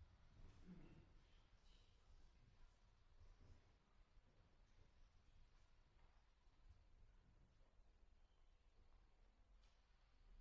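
A piano plays softly in a large hall.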